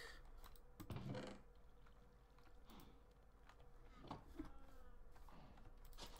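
A wooden chest thumps shut.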